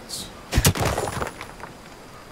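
Rock shatters with a loud crunch.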